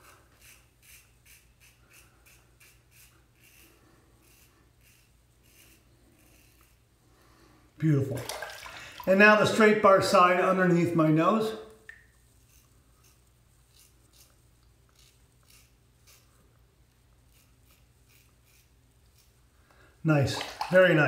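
A razor scrapes over stubble in short strokes.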